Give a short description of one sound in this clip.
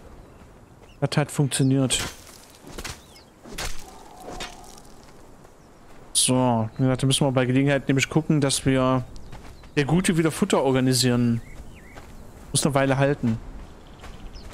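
A man talks into a microphone with animation, close up.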